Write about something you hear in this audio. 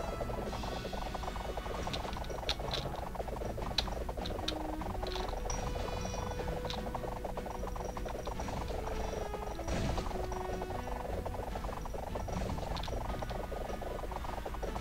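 Chopping hits and chimes ring out again and again.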